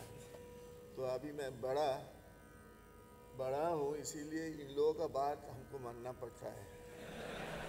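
A man recites rhythmic syllables in a melodic voice into a microphone nearby.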